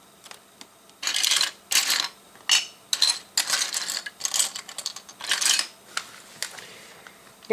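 Plastic bricks clatter and click together close by.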